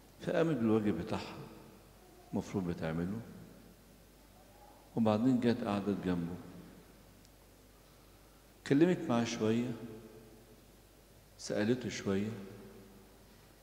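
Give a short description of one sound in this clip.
An elderly man speaks slowly and solemnly into a microphone, in phrases with pauses, in a reverberant hall.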